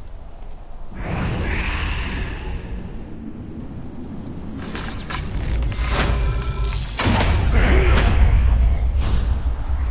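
A deep ghostly whoosh swells and fades.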